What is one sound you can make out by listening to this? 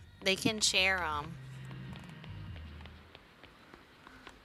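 Footsteps tap on a hard pavement.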